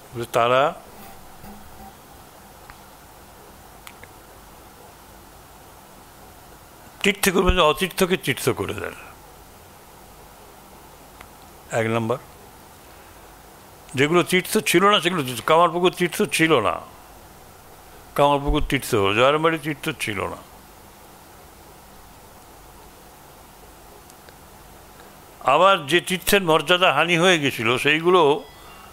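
An elderly man reads aloud slowly into a microphone, pausing between phrases.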